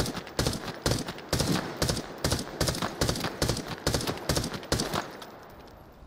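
Rapid gunfire bursts loudly and close by.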